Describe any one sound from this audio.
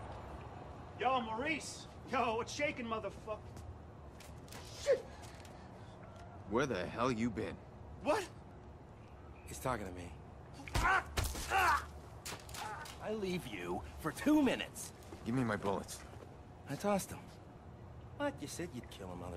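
A man shouts angrily and threateningly nearby.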